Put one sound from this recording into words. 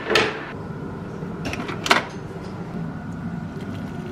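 Water pours from a kettle into a mug.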